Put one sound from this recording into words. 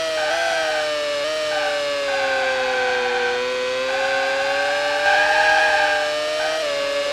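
Tyres squeal through a fast corner.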